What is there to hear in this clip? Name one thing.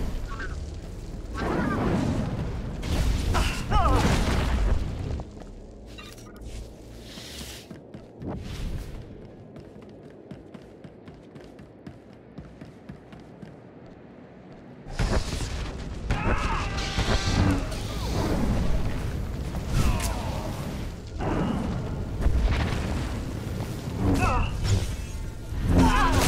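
Energy blades hum and clash in a fight.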